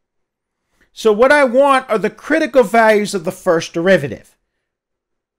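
A middle-aged man speaks calmly, explaining, close through a headset microphone.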